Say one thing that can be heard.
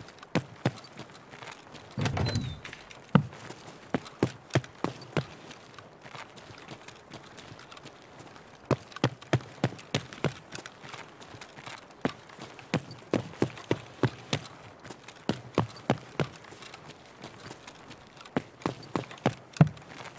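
Footsteps tap at an even pace on a hard floor.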